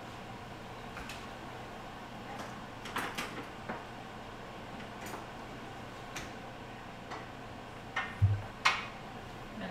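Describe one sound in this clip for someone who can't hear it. Dishes and utensils clink and knock on a counter.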